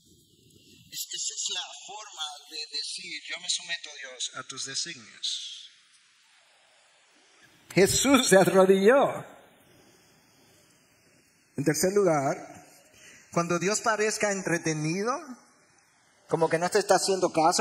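An elderly man speaks calmly and earnestly through a microphone, pausing between phrases.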